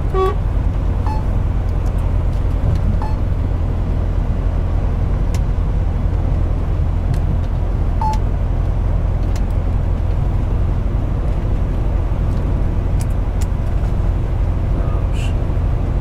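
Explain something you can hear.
Tyres roll with a steady rumble on a highway.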